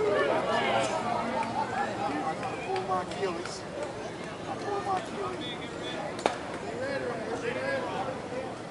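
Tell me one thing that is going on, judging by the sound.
Several men talk and call out across an open field.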